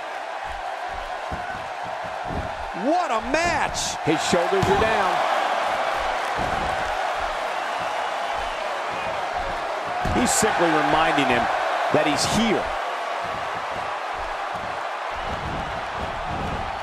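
A large crowd cheers and murmurs steadily.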